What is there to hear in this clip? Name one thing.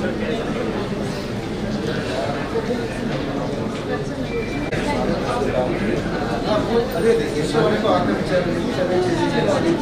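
Several adult men and women talk at once in a room.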